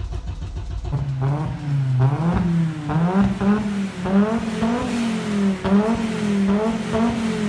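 A car engine revs up and down repeatedly through its exhaust.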